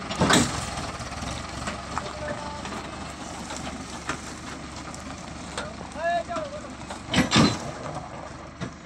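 Loaded trailers rattle and clatter as they roll past.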